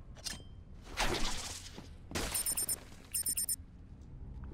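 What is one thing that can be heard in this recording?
A heavy blow whooshes and strikes.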